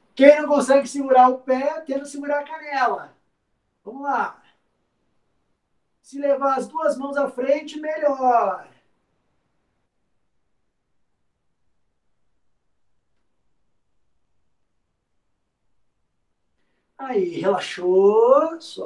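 A man speaks calmly and clearly close by, giving instructions in short bursts.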